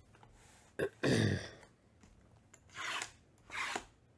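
A knife slices through plastic wrap with short rasping strokes.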